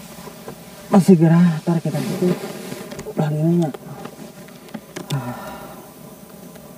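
A young man talks drowsily close by.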